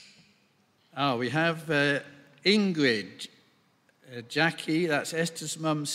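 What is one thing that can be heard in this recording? An elderly man reads out calmly into a microphone.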